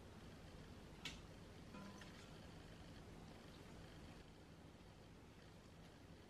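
Meat drops into a metal pot with a soft thud.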